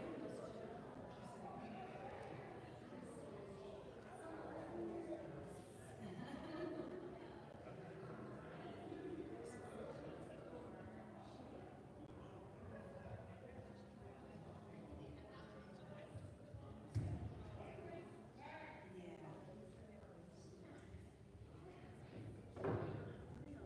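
Men and women chat quietly in a large echoing hall.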